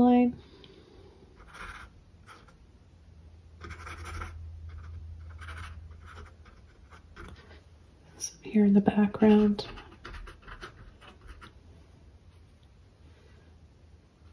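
A paintbrush dabs and strokes softly on canvas.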